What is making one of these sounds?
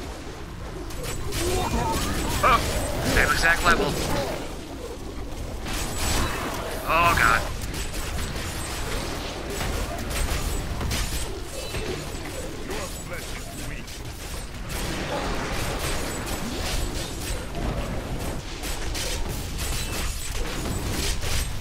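Magic blasts crackle and explode over and over in a dense, noisy battle.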